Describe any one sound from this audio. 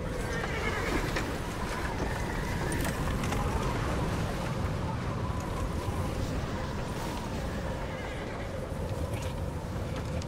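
Wagon wheels roll and creak over snow.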